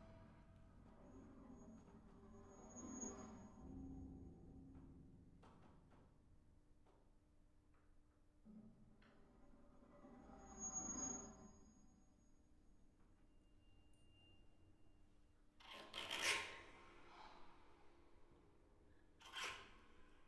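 Electronic tones swell and fade from loudspeakers in a large room.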